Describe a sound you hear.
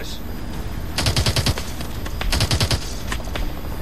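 A rapid-fire gun fires short bursts.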